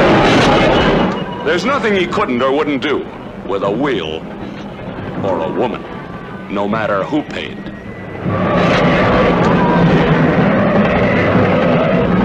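Racing car engines roar loudly as cars speed past.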